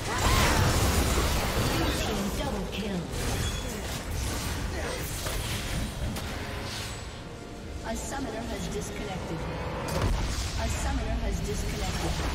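Game combat sound effects of spells and impacts clash rapidly.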